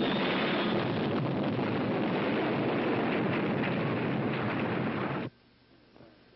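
A loud explosion roars steadily.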